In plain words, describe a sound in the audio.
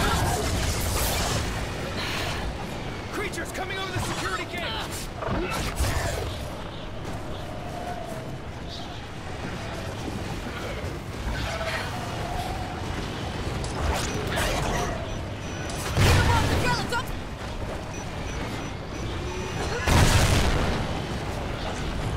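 Creatures screech and snarl.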